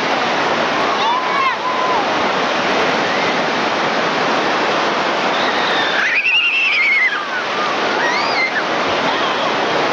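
A child shouts excitedly nearby.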